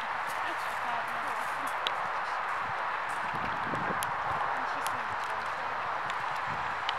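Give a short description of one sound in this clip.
A horse canters with soft hoofbeats thudding on sand.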